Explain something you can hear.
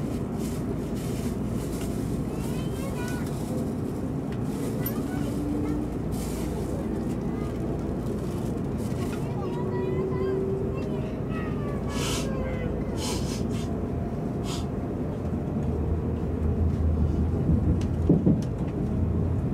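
A train rumbles steadily along the tracks, heard from inside.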